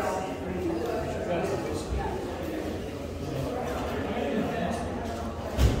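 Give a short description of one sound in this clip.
A man talks close by in a casual tone.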